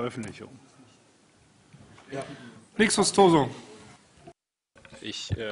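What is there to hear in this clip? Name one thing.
A man speaks through a microphone with a slight echo.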